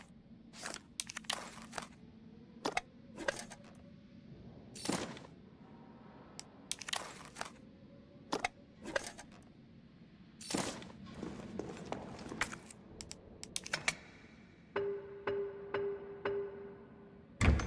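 Short interface clicks and chimes sound one after another.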